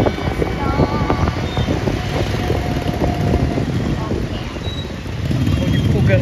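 Motorbikes pass close by with buzzing engines.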